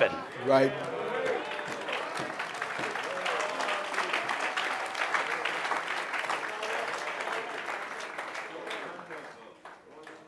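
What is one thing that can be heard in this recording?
A large crowd applauds and cheers.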